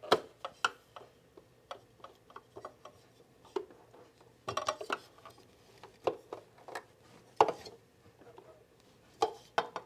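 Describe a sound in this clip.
Metal parts click as a sewing machine attachment is adjusted.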